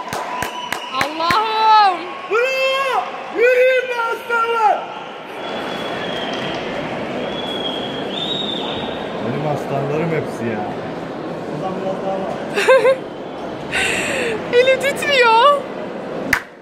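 Audience members whistle loudly.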